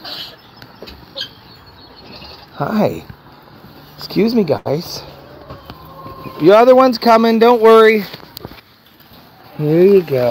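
A pig grunts close by.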